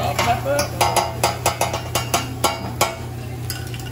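Metal spatulas clack rhythmically against a hot griddle.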